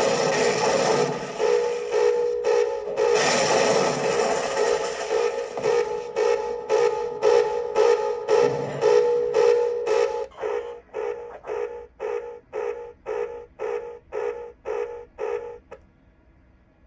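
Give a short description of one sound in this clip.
Loud game sound effects play from a computer speaker, with a fast repeating beat.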